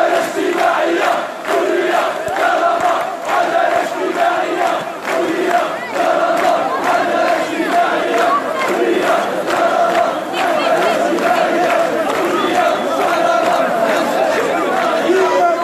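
Many people clap their hands in rhythm.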